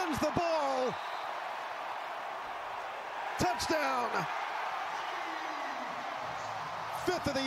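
A large crowd roars and cheers in a big open stadium.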